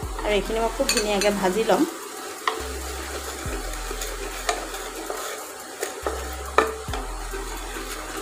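A wooden spatula scrapes and knocks against a metal pot.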